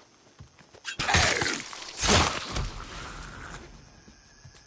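Heavy blows thud in a close, violent struggle.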